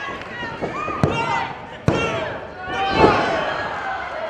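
A referee slaps the ring mat three times.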